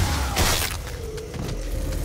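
A shotgun fires with a loud blast.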